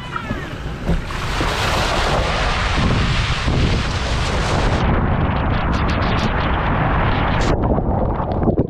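Water rushes and splashes loudly down a slide.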